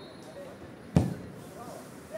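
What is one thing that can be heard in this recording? A football is kicked with a sharp thump.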